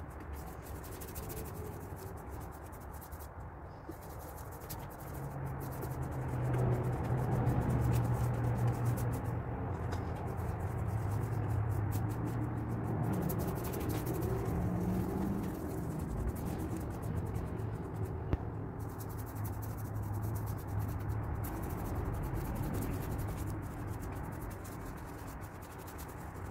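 A paintbrush swishes softly across a vinyl cushion.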